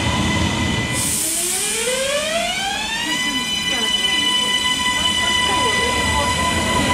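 An electric train's motor whines, rising in pitch as it speeds up, then holding steady.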